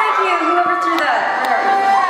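A young woman speaks through a microphone on a loudspeaker.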